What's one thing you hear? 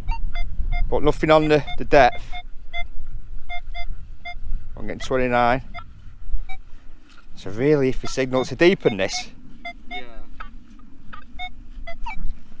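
A metal detector beeps in short, repeated tones.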